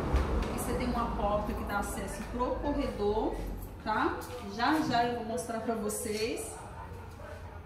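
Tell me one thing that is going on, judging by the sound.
A woman speaks with animation close by, in a slightly echoing space.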